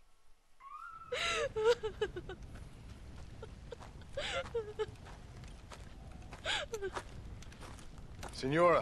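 An elderly woman speaks quietly and sadly.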